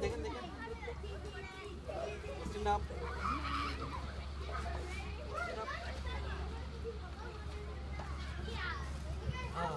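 A toddler babbles and squeals close by.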